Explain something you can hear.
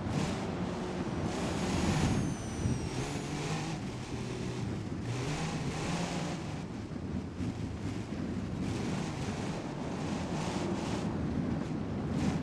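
A car engine drones and revs as the car climbs a sandy slope.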